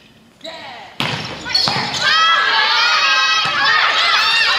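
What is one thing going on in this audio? A volleyball is struck with a loud slap.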